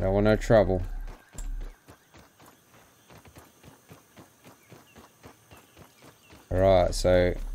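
Footsteps patter softly on dry ground.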